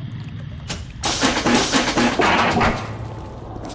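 A machine clanks and whirs briefly.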